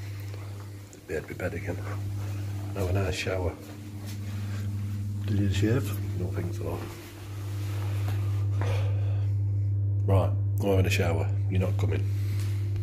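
An older man speaks calmly close by.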